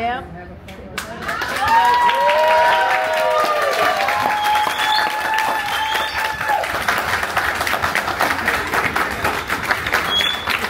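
A crowd applauds loudly outdoors.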